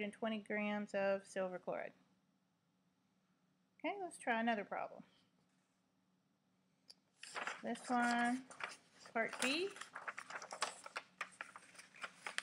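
A woman speaks calmly into a nearby microphone, in short bursts with pauses.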